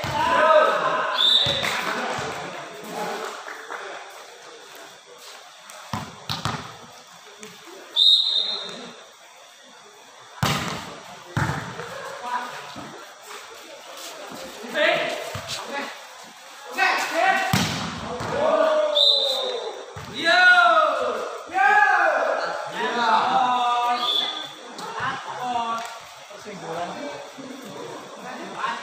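Young men shout and call out loudly from nearby.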